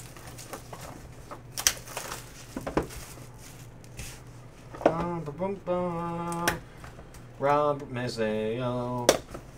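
Cardboard packs rustle and tap against each other in hands.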